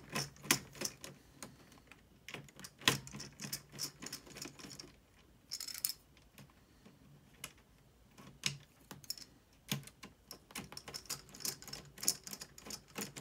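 Plastic parts click and rattle up close.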